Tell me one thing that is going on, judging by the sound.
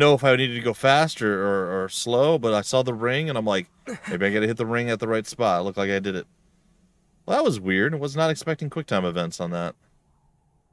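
A young man speaks with strained emotion, close to the microphone.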